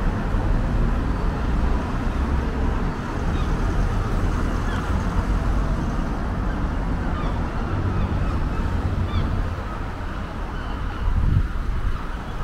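Traffic hums along a street nearby.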